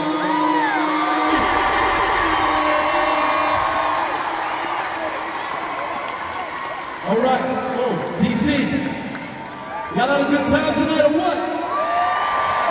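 Loud pop music plays through big loudspeakers in a large echoing arena.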